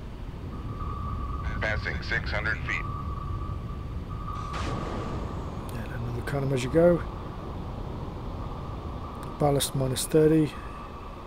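A submarine's engine hums low and steadily underwater.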